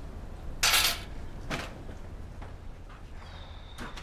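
A door shuts with a thud.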